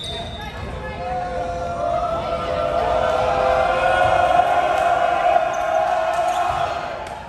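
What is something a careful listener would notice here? Spectators cheer and chant.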